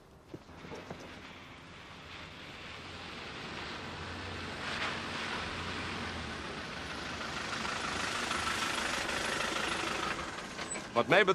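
A car engine hums as a vehicle drives closer over gravel.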